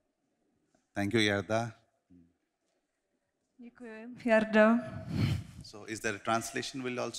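A second man speaks calmly into a microphone.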